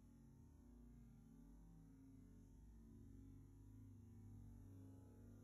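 A small ferret nibbles and licks at a hand.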